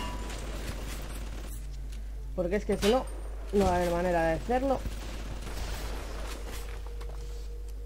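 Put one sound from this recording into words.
A shotgun fires with loud bangs.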